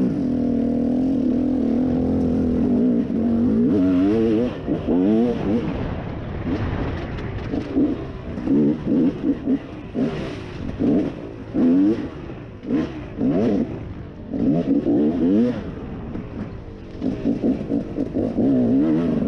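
A dirt bike engine roars and revs up and down.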